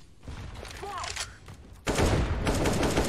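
A rifle fires a quick burst of shots.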